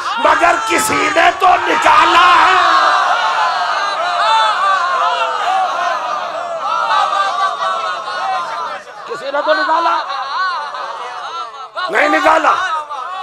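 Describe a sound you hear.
A man preaches passionately into a microphone, his voice loud through loudspeakers.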